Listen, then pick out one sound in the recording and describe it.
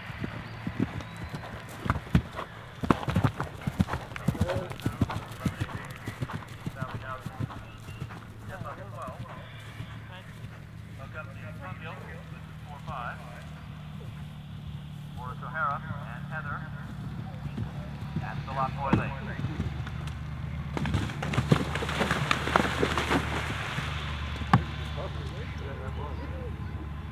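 A horse gallops, its hooves thudding on grass.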